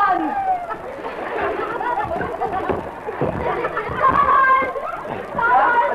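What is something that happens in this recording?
A child sings into a microphone outdoors.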